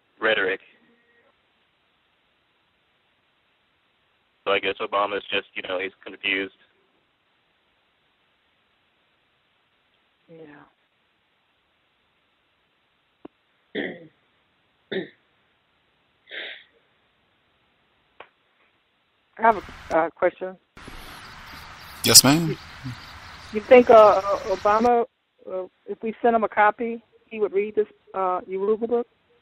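A woman speaks calmly, with long pauses.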